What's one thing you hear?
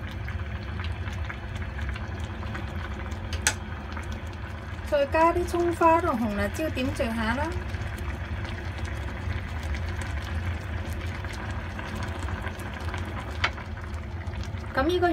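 Broth bubbles softly in a pot.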